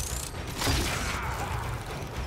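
An electric weapon crackles and zaps.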